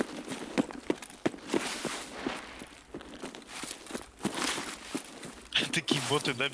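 Footsteps rustle through grass and brush.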